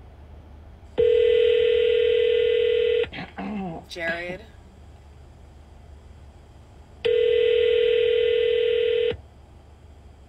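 A phone call rings out in steady long tones.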